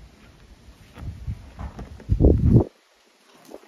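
Folding panels knock and thud.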